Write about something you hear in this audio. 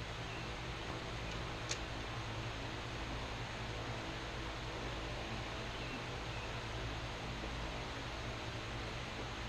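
A metal tool scrapes and clinks against a mower's underside.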